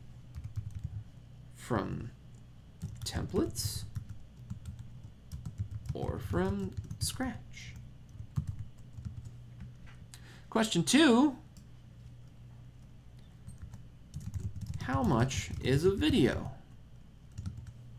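Keys click on a keyboard.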